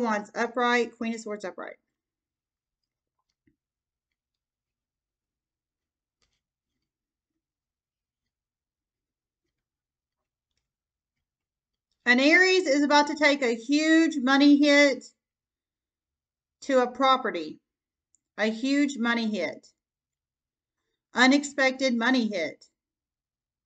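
A woman speaks calmly close by, in short bursts with long pauses.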